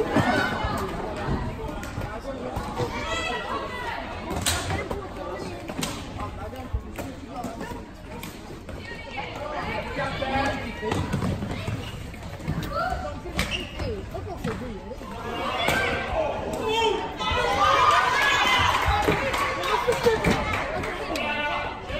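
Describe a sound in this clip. Floorball sticks clack against a ball with sharp knocks.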